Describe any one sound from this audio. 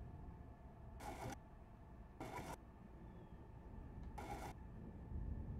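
Soft swishes sound as menu panels slide across.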